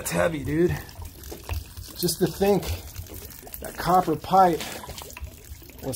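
Water trickles from a container onto gravel.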